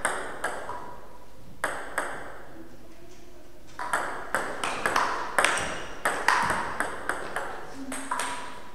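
A table tennis ball clicks back and forth off paddles and a table in a slightly echoing room.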